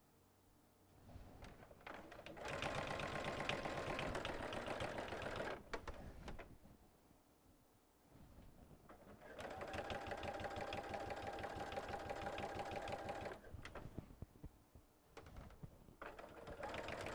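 A sewing machine stitches rapidly in bursts, starting and stopping.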